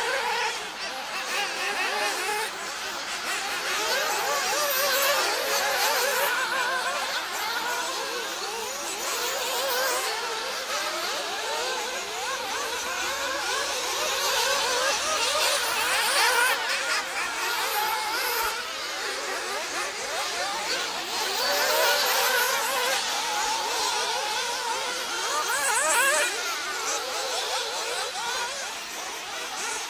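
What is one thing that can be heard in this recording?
Small model racing cars whine and buzz at high speed, rising and falling as they race around a track outdoors.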